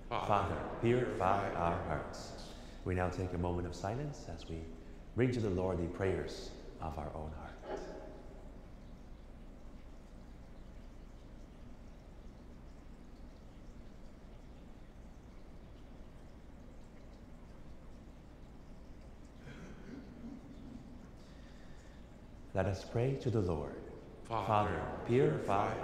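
A man reads aloud into a microphone in a large echoing hall.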